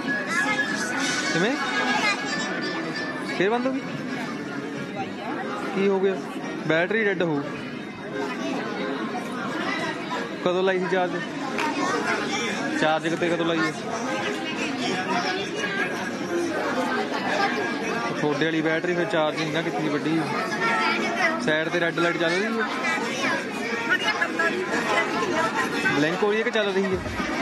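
A crowd of men and women chat nearby.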